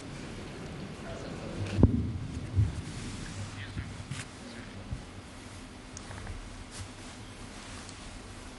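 A man talks softly nearby.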